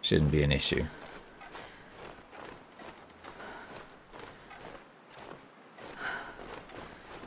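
Footsteps crunch slowly through deep snow.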